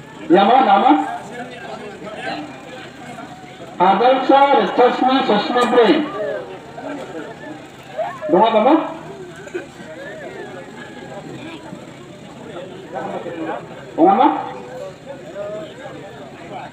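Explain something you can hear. A crowd of men murmurs and chatters outdoors.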